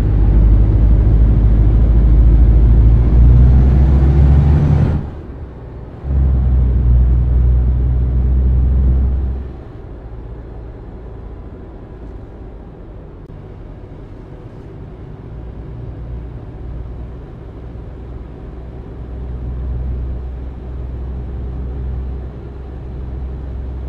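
A truck engine rumbles steadily, rising and falling as it pulls away.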